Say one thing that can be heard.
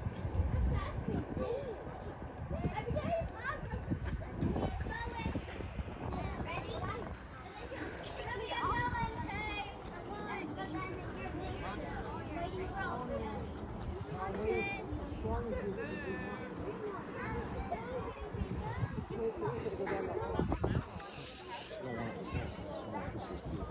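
Children shout and chatter in the distance.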